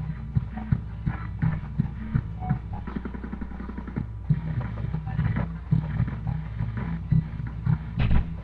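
Rock music with heavy drums plays through a television speaker.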